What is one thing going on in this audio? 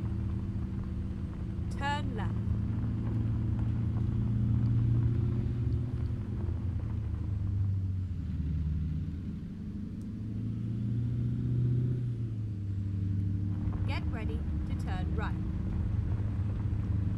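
A truck's diesel engine rumbles steadily, rising and falling as it pulls along.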